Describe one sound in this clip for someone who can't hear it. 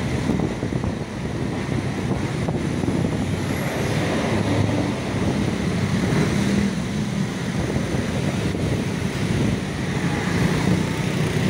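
A bus engine hums as it drives by.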